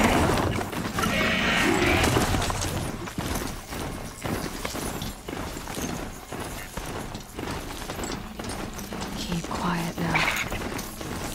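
Heavy mechanical footsteps thud and crunch through snow at a steady trot.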